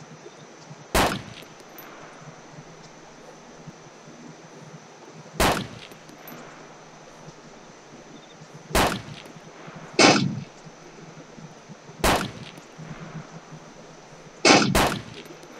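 A rifle fires single loud shots, each followed by a rolling echo.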